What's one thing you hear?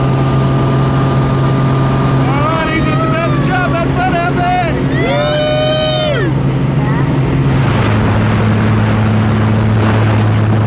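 An aircraft engine drones loudly and steadily.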